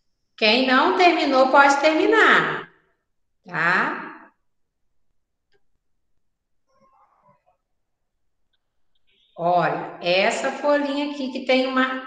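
A young woman talks calmly and clearly over an online call, with pauses.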